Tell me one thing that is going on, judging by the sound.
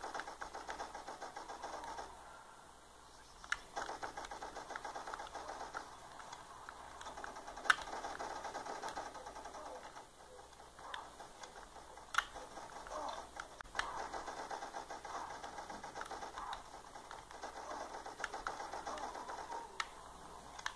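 A video game plays gunfire and effects through a small phone speaker.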